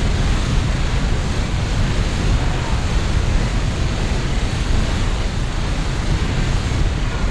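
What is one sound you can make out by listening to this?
Explosions rumble and boom in a game battle.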